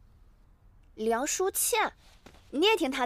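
A young woman exclaims in surprise, close by.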